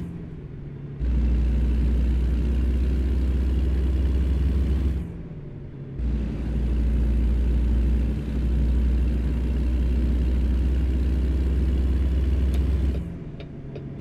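A heavy truck engine rumbles deeply, swelling louder in long stretches.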